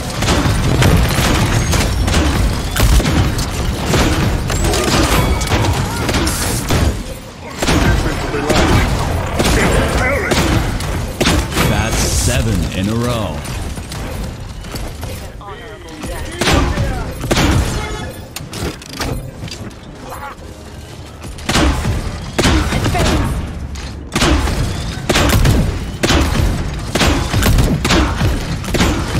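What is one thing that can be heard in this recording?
Heavy gunfire bursts rapidly and loudly.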